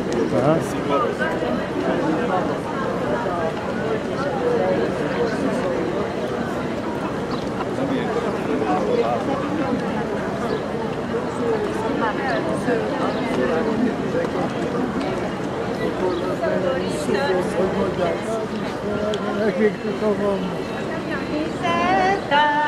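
A crowd of elderly men and women chatters close by outdoors.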